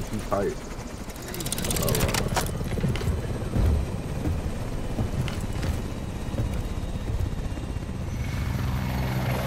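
A helicopter rotor whirs and thumps loudly as the aircraft spins.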